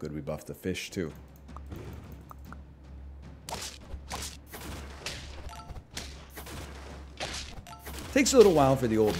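A man speaks with animation close to a microphone.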